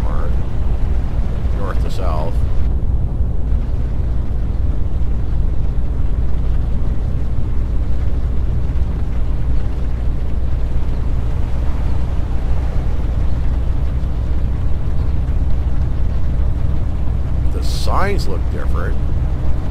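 Rain patters steadily on a windscreen.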